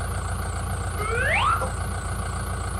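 A tractor's hydraulics whine, rising in pitch as the loader arm lifts.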